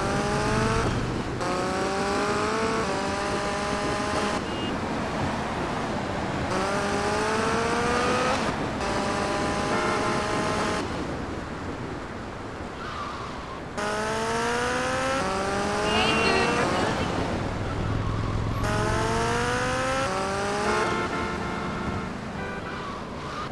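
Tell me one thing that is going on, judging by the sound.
A motorcycle engine revs up and shifts gears repeatedly as it speeds along.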